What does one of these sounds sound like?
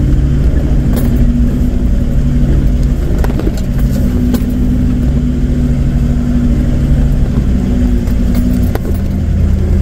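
Stones and bumps knock against the vehicle in sharp, scattered clicks.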